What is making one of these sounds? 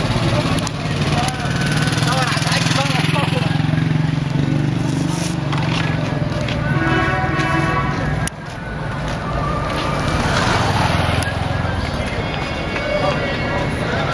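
Men chatter nearby in a crowd.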